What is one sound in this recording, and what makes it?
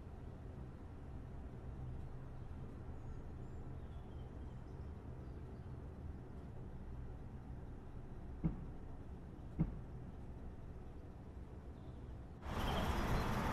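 A train's motor hums low and steady inside a driver's cab.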